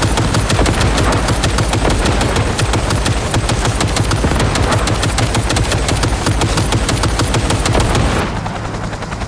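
Fiery explosions roar and crackle.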